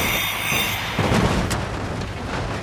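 A loud explosion booms and roars.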